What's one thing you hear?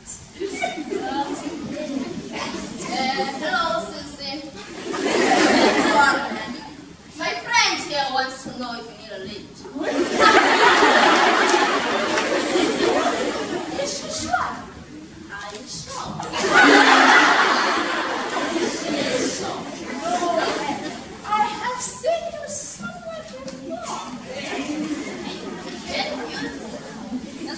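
Young women speak with animation on a stage, in a large echoing hall.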